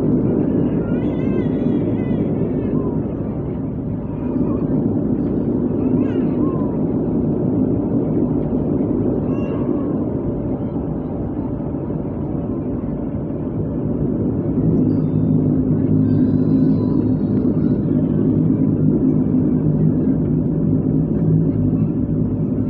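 A propeller engine drones loudly and steadily from close by, growing louder as the plane speeds up.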